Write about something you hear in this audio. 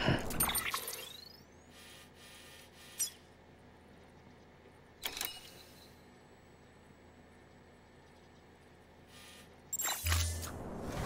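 Short electronic menu blips and clicks sound.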